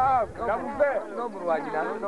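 A man sings loudly close by.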